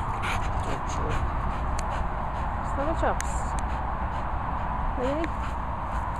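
A dog pants.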